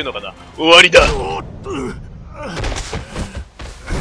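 A body thuds heavily onto hard ground.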